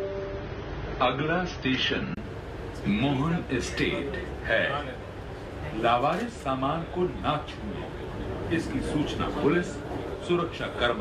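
Men talk nearby, some speaking with animation.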